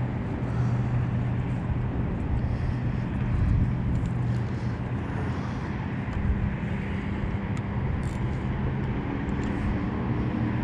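Small waves lap against a boat's hull.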